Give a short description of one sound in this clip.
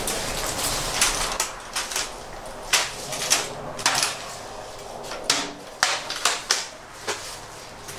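A folding aluminium table clanks and rattles as it is folded.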